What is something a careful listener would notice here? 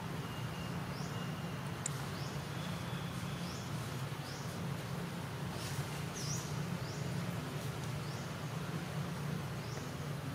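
A newborn macaque squeaks thinly.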